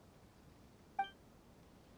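A short bright chime rings once.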